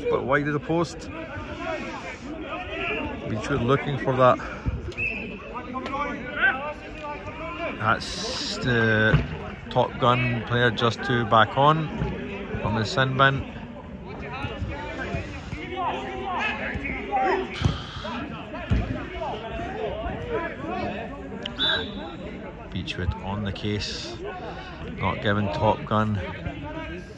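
Young men shout and call to each other outdoors.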